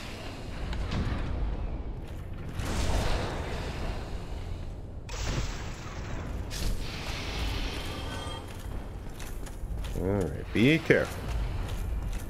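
Swords swing and strike in a fight.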